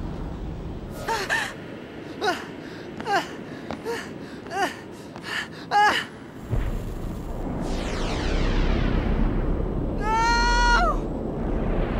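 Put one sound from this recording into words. A young man shouts with strain.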